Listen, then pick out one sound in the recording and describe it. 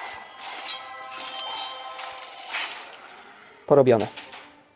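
Bright game sound effects chime and sparkle.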